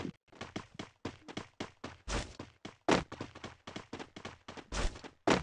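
Quick footsteps run across the ground.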